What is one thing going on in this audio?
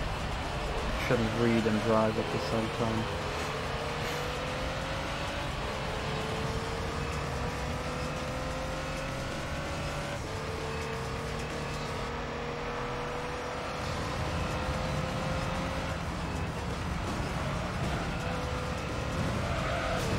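A racing car engine whines, rising in pitch through the gears.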